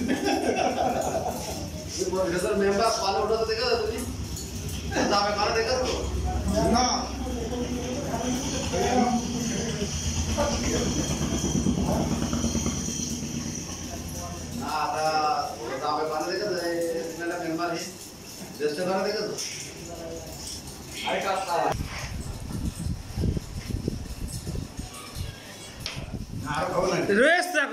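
Several men talk and laugh cheerfully close by.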